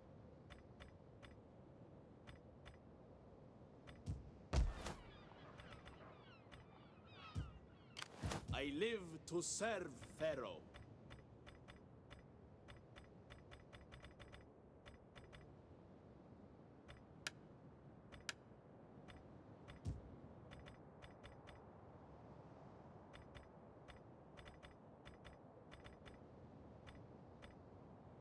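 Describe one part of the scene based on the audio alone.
Short interface clicks tick repeatedly as menus open and close.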